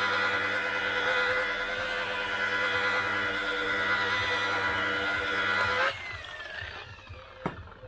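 A polishing machine whirs steadily and then winds down.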